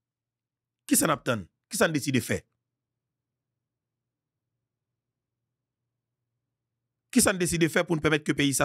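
A man speaks calmly and close into a microphone, with long pauses.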